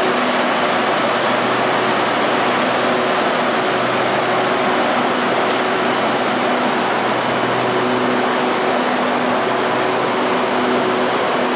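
A stationary train hums steadily in a large echoing hall.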